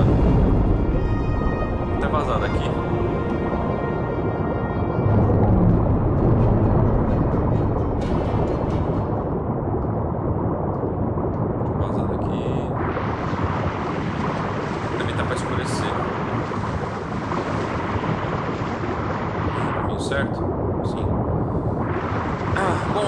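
Water rushes, muffled underwater, as a large sea creature swims.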